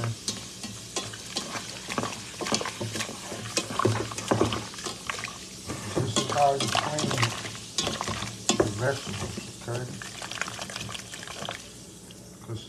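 Wet vegetables squelch and rustle as a hand squeezes them in a metal pot.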